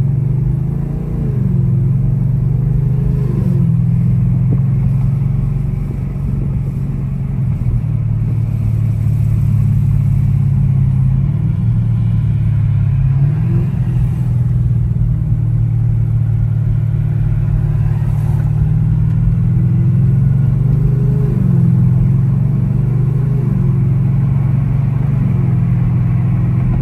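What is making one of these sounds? A car engine revs up and drops in pitch as gears shift.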